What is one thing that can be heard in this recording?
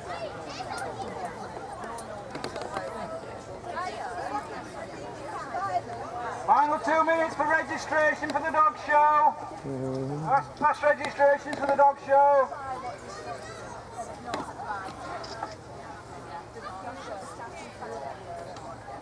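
A crowd of men and women chat outdoors at a distance.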